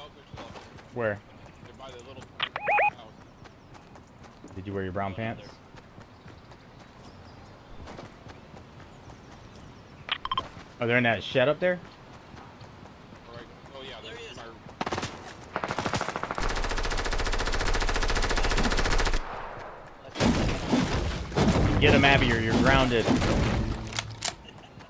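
A man speaks casually into a microphone.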